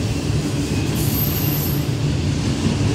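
Train wheels squeal briefly on the rails.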